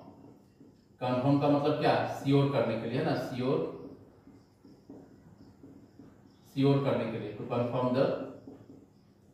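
A man speaks calmly and clearly, close by, in short bursts.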